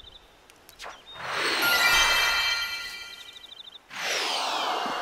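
A bright chiming jingle rings out.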